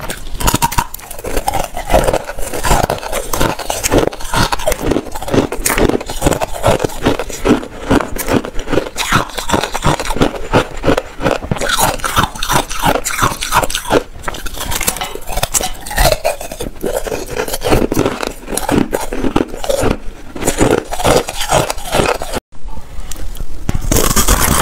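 Ice crunches loudly and crisply between teeth, very close to a microphone.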